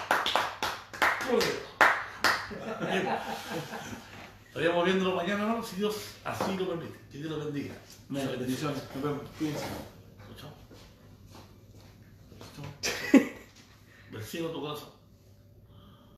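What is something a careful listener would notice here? Men laugh.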